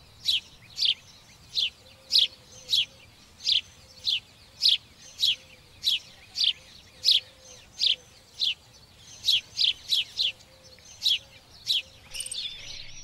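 A sparrow chirps loudly in short, regular bursts.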